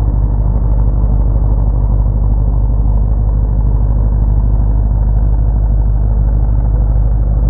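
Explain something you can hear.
A truck engine roars loudly as it churns through deep mud.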